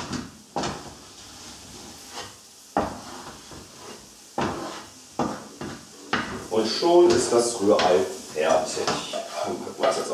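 A wooden spatula scrapes and knocks against a frying pan.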